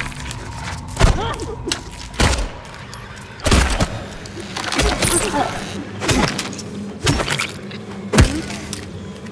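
Heavy blows thud against a body, several times.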